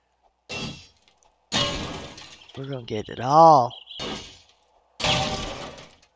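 A pickaxe strikes wood with dull knocks.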